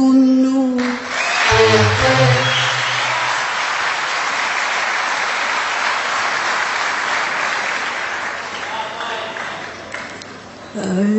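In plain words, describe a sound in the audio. An orchestra plays with violins.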